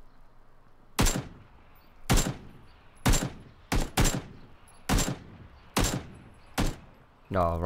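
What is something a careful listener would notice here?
A rifle fires single sharp shots, one after another.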